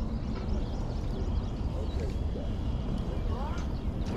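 A fishing reel whirs softly as its handle is cranked.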